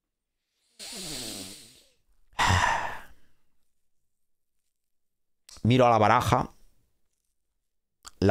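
A young man speaks close to a microphone, with pauses.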